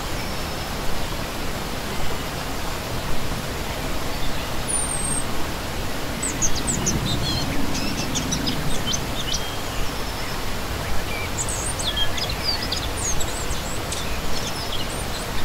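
A shallow stream rushes and splashes steadily over rocks close by.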